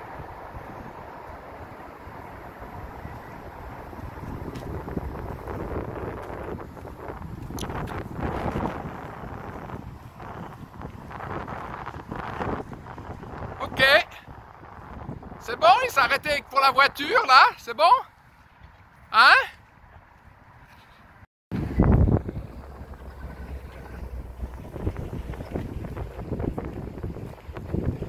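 A car rolls slowly over pavement.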